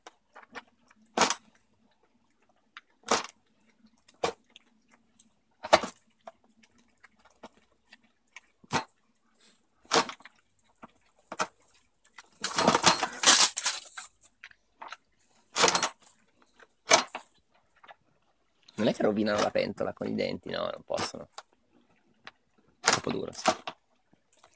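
Pigs munch and slurp food from a metal pan.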